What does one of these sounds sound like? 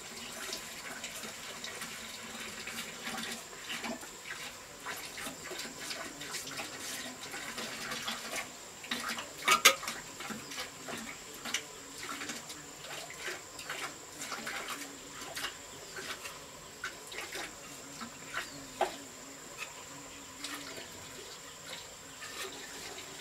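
A trowel taps and knocks on cement.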